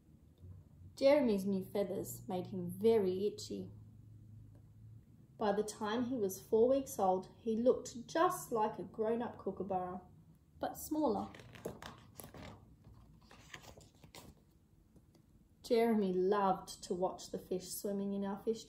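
A young woman reads a story aloud close by, in a calm, expressive voice.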